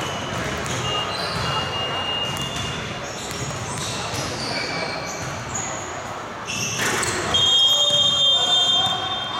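Basketball shoes squeak sharply on a hardwood floor, echoing in a large hall.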